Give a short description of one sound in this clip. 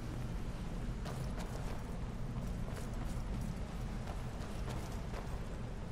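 Footsteps thud slowly on wooden planks and stone.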